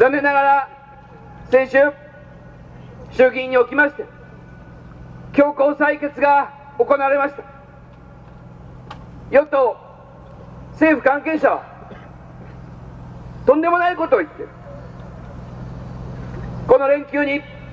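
A man speaks through a loudspeaker in short, forceful bursts outdoors.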